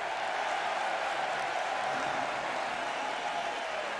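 A large crowd cheers in an echoing arena.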